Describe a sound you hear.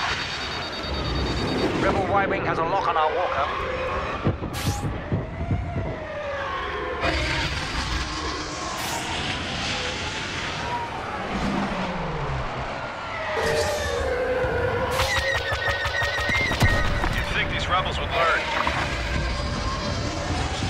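A starfighter engine whines and roars, rising and falling in pitch.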